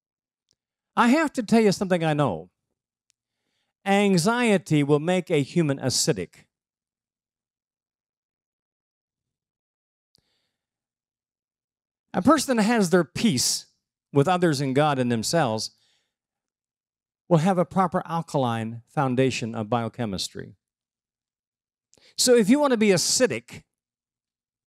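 An older man speaks calmly through a microphone and loudspeakers, in bursts with pauses.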